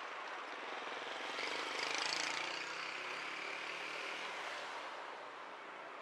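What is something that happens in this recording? A car drives past close by, rising and fading.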